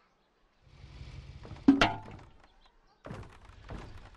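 A metal key clinks as it is picked up.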